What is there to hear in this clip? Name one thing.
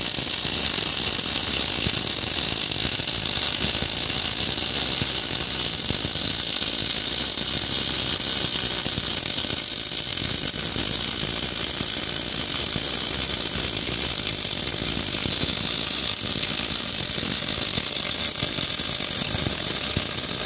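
A welding arc crackles and hisses steadily up close.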